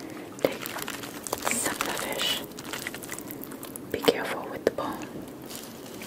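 Fingers pull apart flaky fish flesh with soft tearing sounds.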